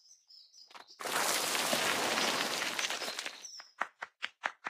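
A loud rushing hiss plays as sand spreads out.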